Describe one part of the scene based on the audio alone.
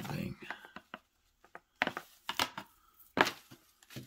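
A cable rattles and taps against cardboard.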